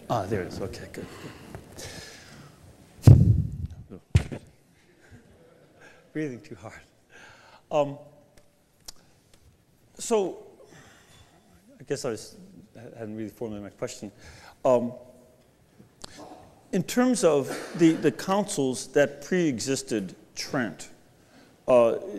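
A man speaks calmly into a microphone, heard in a large room with a slight echo.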